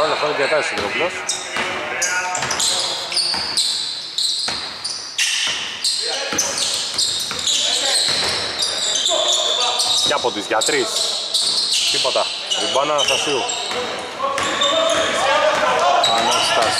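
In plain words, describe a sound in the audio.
A basketball bounces on a wooden floor in a large echoing hall.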